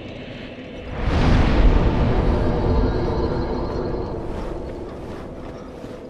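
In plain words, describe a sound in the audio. A fire flares up with a deep roar and slowly fades.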